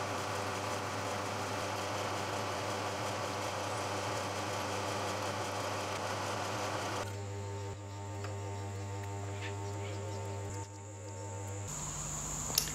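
A drill press whirs steadily as it bores into metal.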